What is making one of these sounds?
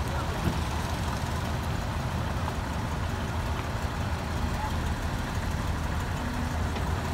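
A vintage car engine idles and putters close by.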